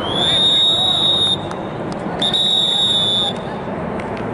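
A referee blows a whistle in two long, shrill blasts.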